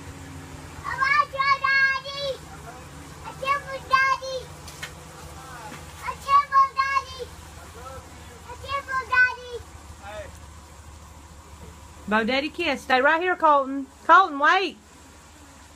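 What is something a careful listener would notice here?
A small child calls out loudly in a high voice nearby.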